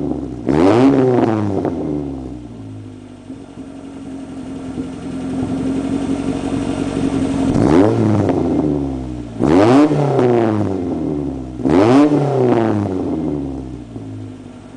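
A car engine idles with a deep exhaust rumble.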